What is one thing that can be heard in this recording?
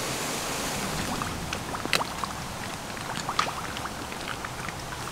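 Dry leaves rustle and crackle close by as a hand moves through them.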